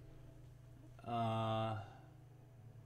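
A young man hums a sustained note.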